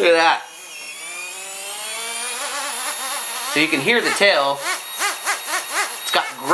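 A small model helicopter's gears and motor whine, rising and falling in pitch.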